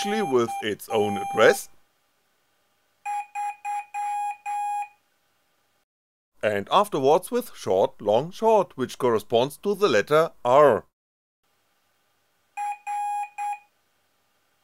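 An electronic buzzer beeps in short, high, steady tones.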